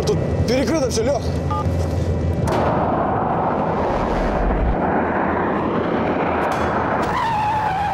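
A car engine roars as a car speeds along.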